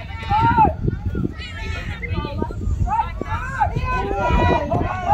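Young players shout and call to each other outdoors on an open field.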